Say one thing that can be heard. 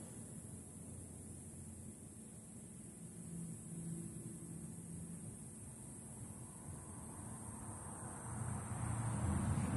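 Traffic rumbles steadily along a nearby road outdoors.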